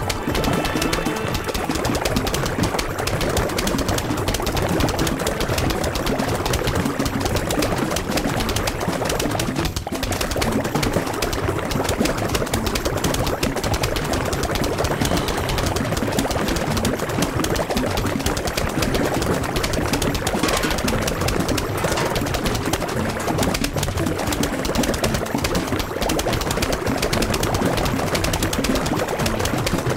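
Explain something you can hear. Rapid popping shots fire nonstop in a dense, busy clatter.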